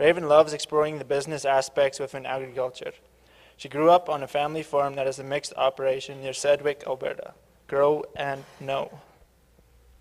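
A man speaks calmly into a microphone, heard over loudspeakers in a large hall.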